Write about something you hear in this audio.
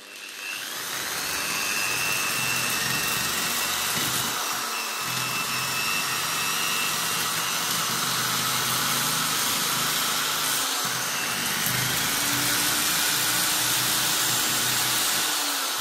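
An electric drill whirs steadily at high speed.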